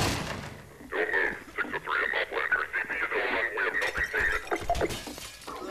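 A man barks orders through a crackling, muffled radio voice.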